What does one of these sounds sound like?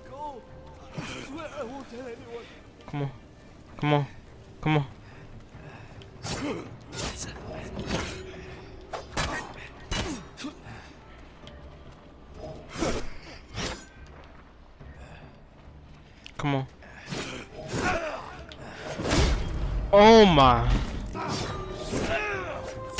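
Men grunt and shout as they fight.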